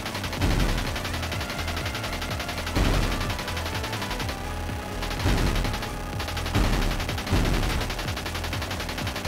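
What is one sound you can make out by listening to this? A video game machine gun fires in rapid bursts.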